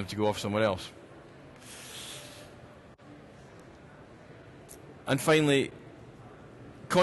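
A middle-aged man speaks through a microphone in short bursts.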